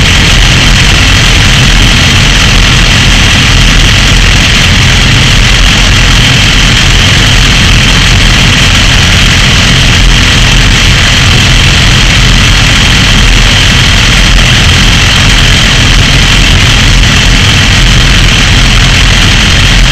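Motorcycle engines idle loudly close by.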